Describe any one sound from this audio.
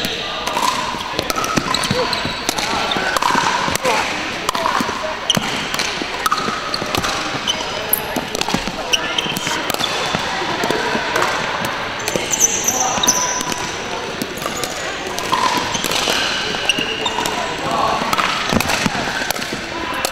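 Sounds echo around a large indoor hall.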